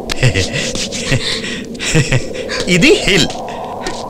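A man claps his hands.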